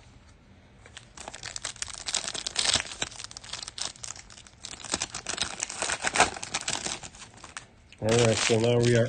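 A foil card pack crinkles and tears as it is opened.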